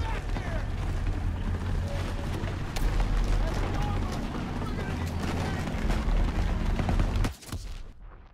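Rapid gunfire crackles and booms close by.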